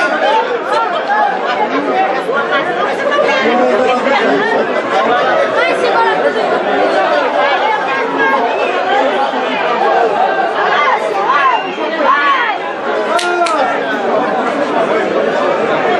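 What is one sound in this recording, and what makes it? Men whistle and yell at a bull.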